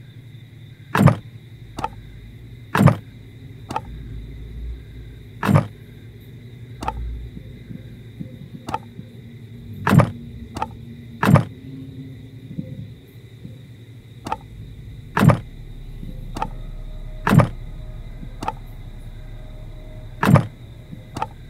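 Wooden planks knock into place with hollow thuds.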